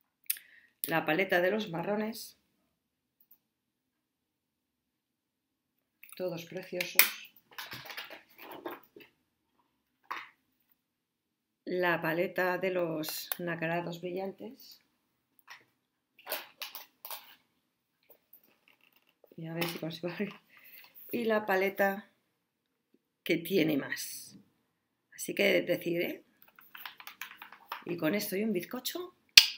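A woman talks calmly and close up, with pauses.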